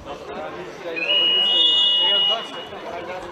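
A referee blows a long shrill whistle.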